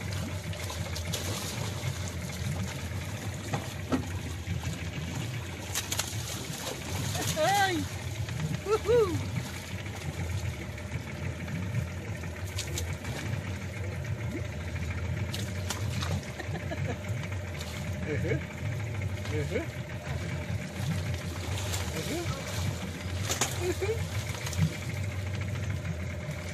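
Water splashes and sloshes as a cage is hauled out of the sea.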